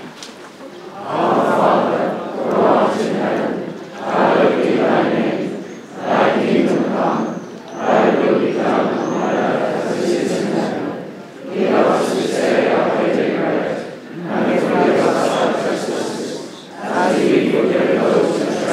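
A large group of men sings together in phrases outdoors.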